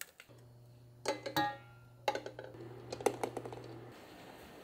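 Eggs knock against the bottom of a pot.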